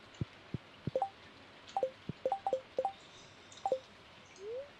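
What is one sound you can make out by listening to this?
Short pitched blips chime from a game menu.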